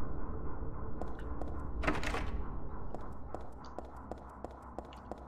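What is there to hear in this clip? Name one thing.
Footsteps tread slowly and evenly on a hard floor.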